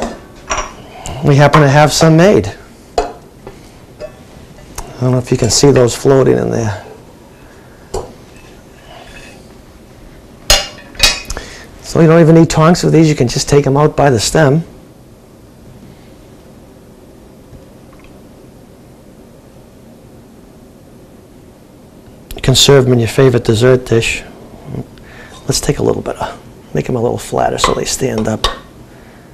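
A middle-aged man talks calmly through a clip-on microphone, with pauses.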